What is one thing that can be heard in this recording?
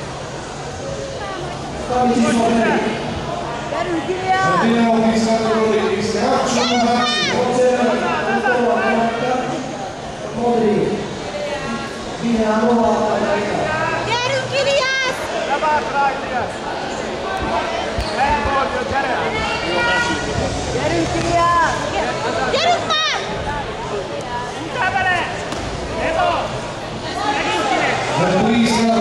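Spectators shout and cheer loudly in an echoing hall.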